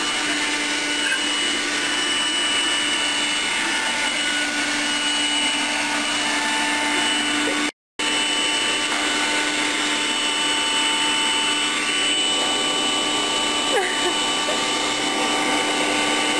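A small handheld vacuum cleaner whirs steadily up close.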